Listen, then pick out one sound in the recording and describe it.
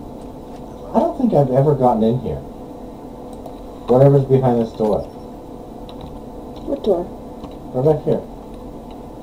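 A young woman talks casually into a microphone, in short bursts.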